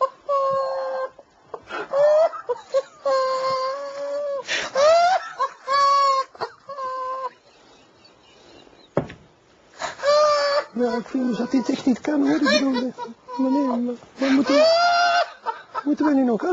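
A man laughs uncontrollably in loud, high bursts.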